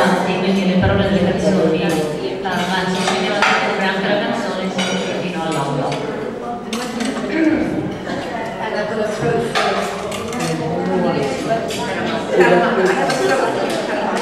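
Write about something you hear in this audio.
A woman sings into a microphone through loudspeakers in an echoing room.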